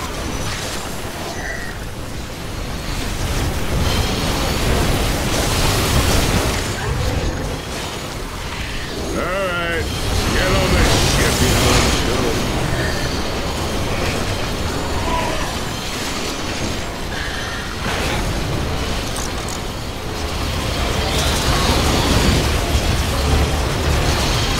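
Explosions boom and crackle throughout the fight.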